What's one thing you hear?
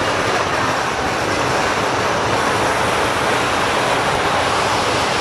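A large outdoor crowd chatters and cheers noisily.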